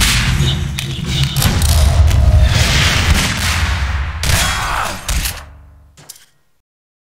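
Gunshots crack and echo.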